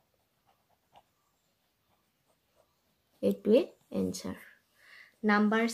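A pen scratches briefly on paper.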